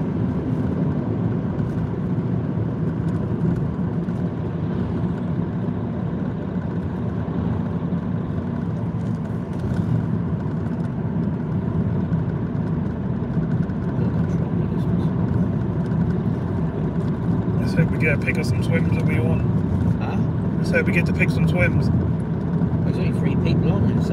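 A car's engine and tyres rumble steadily while driving along a road, heard from inside the car.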